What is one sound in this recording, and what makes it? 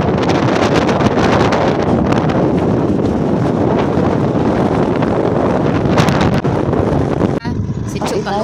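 Wind buffets and rushes loudly past a moving scooter.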